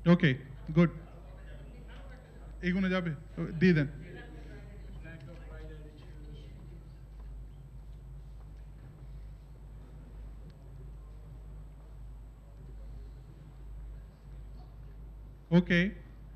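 A middle-aged man speaks through a microphone in short loud bursts.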